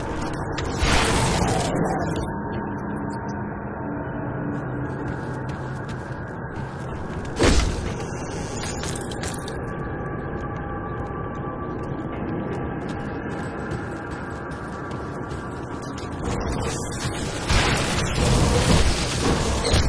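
Weapons clash and spells burst in a fight.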